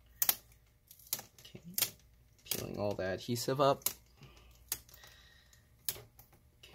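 A plastic pry tool clicks and snaps as it pries at a laptop's edge.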